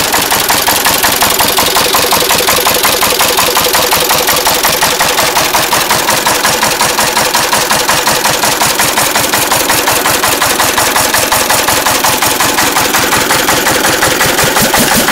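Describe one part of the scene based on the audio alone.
A stationary engine chugs loudly and steadily close by, with a fast, even beat.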